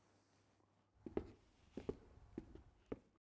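Hard-soled shoes step steadily across a hard floor.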